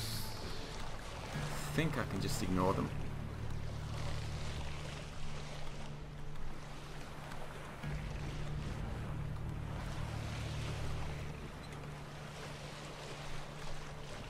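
Water splashes and washes against the hull of a sailing boat.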